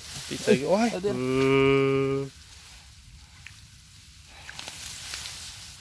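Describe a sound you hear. Dry grass rustles as hands push through it.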